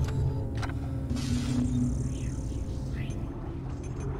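Electronic menu beeps and chimes sound.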